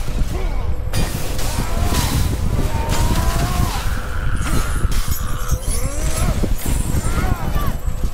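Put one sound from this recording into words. Flames roar and crackle from a swinging fiery blade.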